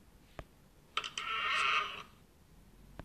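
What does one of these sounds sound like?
A chest creaks open with a sparkling chime.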